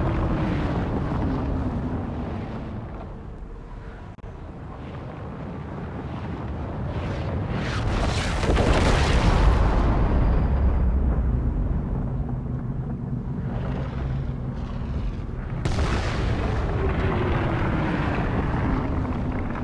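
Wind rushes past a glider as it falls, rising and falling in strength.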